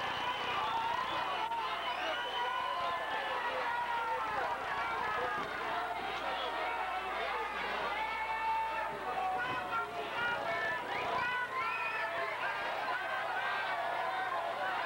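A large crowd cheers and shouts throughout, echoing in a big hall.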